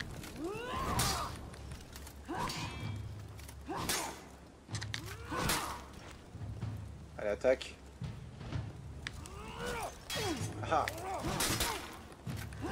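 Swords clash and clang with sharp metallic strikes.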